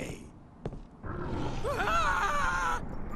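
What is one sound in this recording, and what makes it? A dragon growls.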